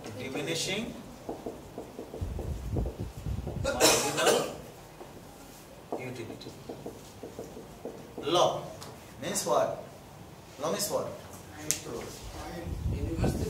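A man speaks calmly and explains.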